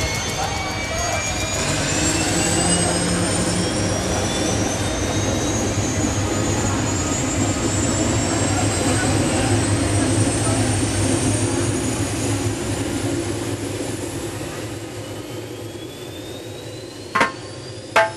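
A helicopter's rotor thumps loudly and steadily close by.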